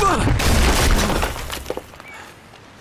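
Stone crashes down and rubble tumbles loudly.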